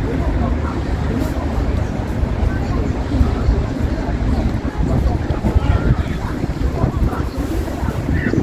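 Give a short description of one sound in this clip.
A ferry engine rumbles low and steady.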